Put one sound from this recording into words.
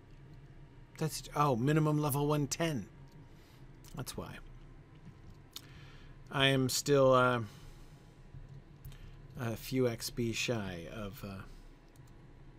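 A middle-aged man talks calmly and close into a microphone.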